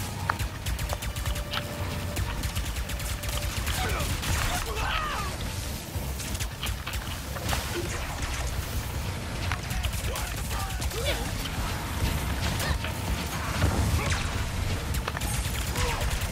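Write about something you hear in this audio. Energy guns fire in rapid bursts.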